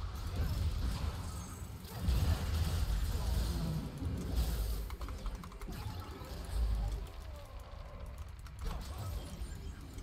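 Spell effects whoosh and burst during a video game battle.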